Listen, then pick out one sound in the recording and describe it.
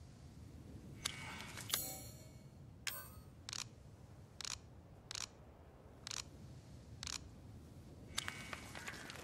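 Short menu clicks and beeps sound one after another.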